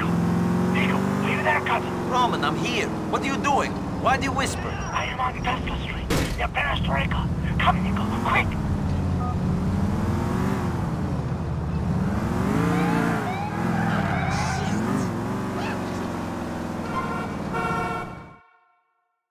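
A car engine roars and revs as a car speeds along a street.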